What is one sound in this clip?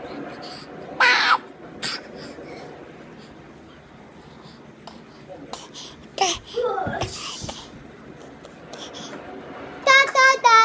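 A baby squeals and babbles happily close by.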